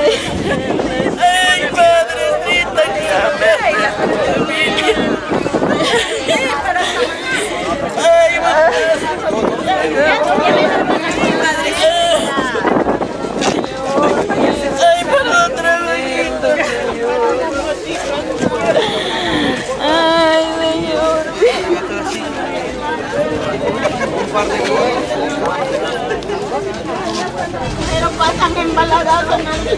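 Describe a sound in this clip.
A crowd of people talk in agitated voices nearby.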